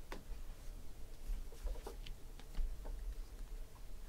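Trading cards rustle and flick between fingers.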